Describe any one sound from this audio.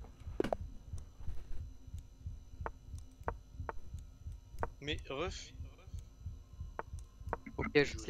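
Chess pieces click softly as moves are made.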